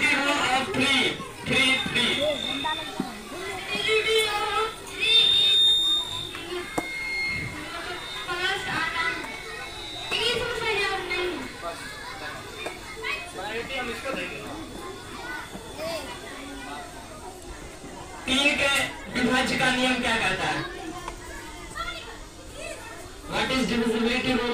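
Children chatter in the background.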